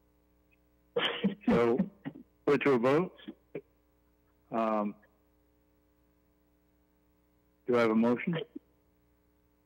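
A man speaks in short phrases through an online call.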